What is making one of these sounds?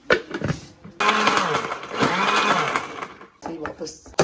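A blender whirs loudly.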